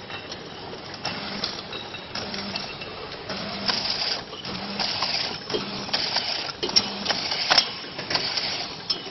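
Bottles clink and clatter as they move along a conveyor.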